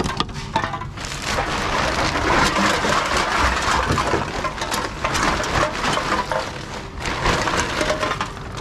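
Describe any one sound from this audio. A plastic bag crinkles and rustles loudly.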